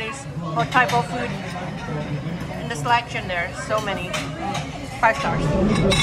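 Metal serving spoons clink against food trays.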